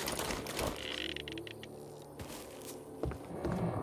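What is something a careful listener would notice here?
Hands scrape and grip while climbing a vine.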